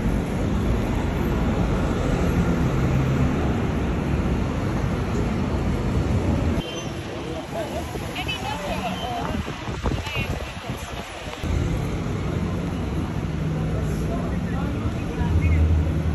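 Traffic rumbles steadily along a busy city street outdoors.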